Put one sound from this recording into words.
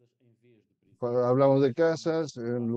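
A second man speaks loudly and with animation over an online call.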